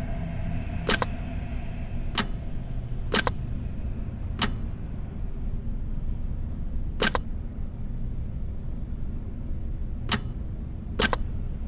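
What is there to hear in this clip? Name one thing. A puzzle ring clicks sharply each time it turns.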